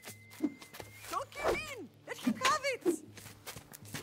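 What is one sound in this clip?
A girl shouts out urgently.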